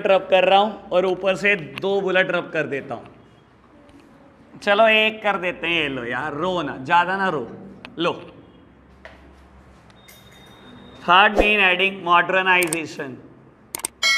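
A man speaks with animation, lecturing close by.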